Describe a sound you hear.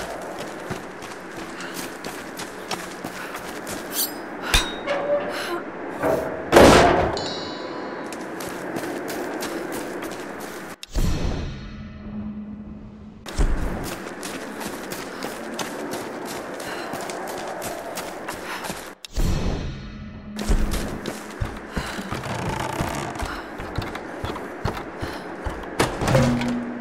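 Footsteps crunch over dirt and gravel.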